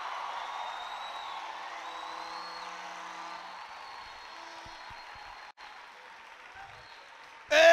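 A crowd of men and women sings together.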